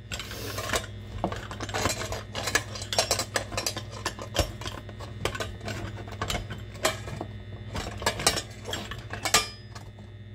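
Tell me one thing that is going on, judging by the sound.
A metal food mill grinds and squelches tomatoes, scraping against a steel bowl.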